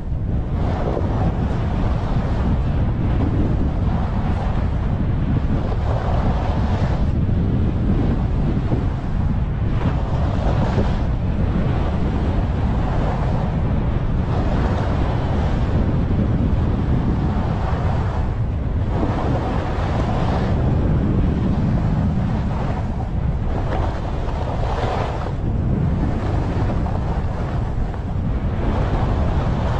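Skis carve and scrape over snow in bursts.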